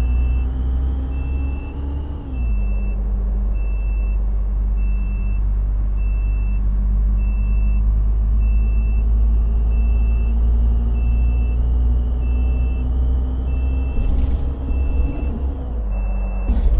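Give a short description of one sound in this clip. A turn signal beeps at an even pace.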